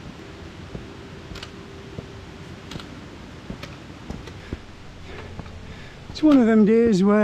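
Boots crunch on a rocky path.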